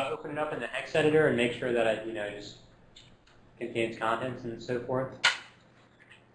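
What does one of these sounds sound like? A man lectures calmly through a microphone.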